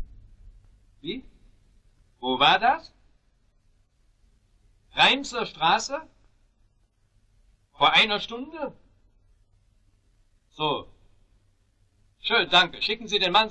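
A middle-aged man speaks briskly into a telephone.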